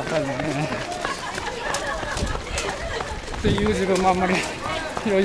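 Footsteps of many runners patter on the road.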